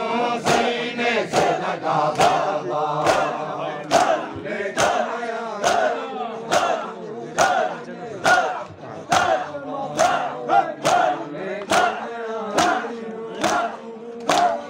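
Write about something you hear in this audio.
Hands beat on bare chests in a steady rhythm, with loud slaps.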